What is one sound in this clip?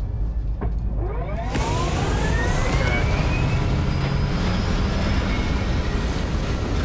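Thrusters roar loudly as a ship lifts off with a rising whine.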